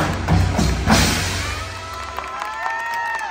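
Drums and cymbals crash loudly in a large echoing hall.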